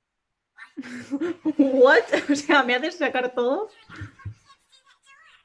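A young woman laughs close to the microphone.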